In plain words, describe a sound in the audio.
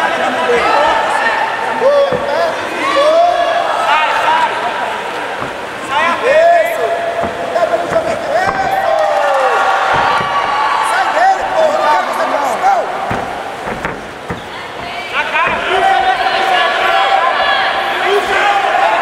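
A man shouts instructions loudly from close by.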